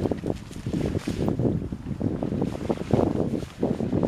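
A jacket's fabric rustles as a man takes it off.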